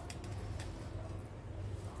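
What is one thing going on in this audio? A metal fork scrapes and clinks against a metal bowl.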